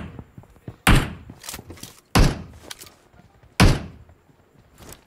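A rifle fires several loud single shots that echo away.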